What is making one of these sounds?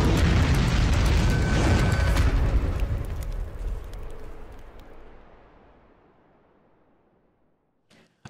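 A fiery explosion booms and slowly fades away.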